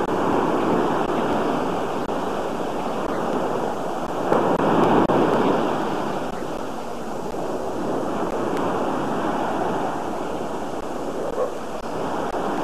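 Waves wash onto a sandy shore.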